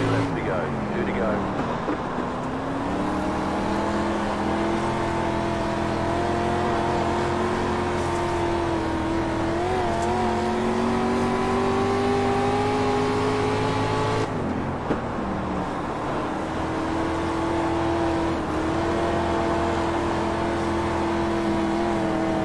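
A race car engine roars steadily, rising and falling in pitch as it shifts gears.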